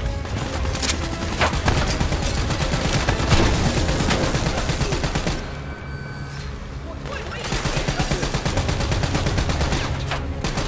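A rapid-fire gun rattles in quick bursts.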